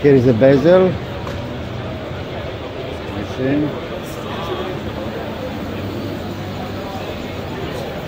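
A crowd murmurs and chatters in a large, echoing hall.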